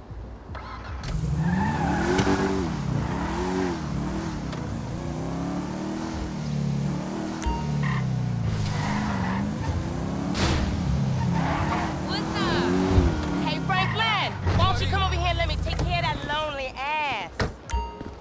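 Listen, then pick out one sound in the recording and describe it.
A sports car engine roars and revs as the car accelerates.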